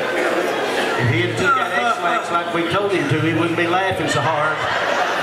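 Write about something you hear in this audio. Men sing together through loudspeakers in a large hall.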